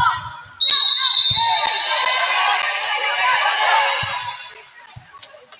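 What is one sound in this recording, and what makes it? A crowd cheers and claps in a large echoing gym.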